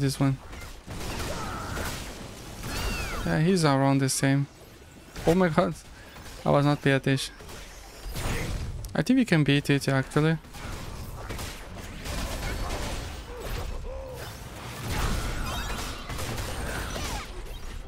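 Magic blasts burst and crackle in quick succession.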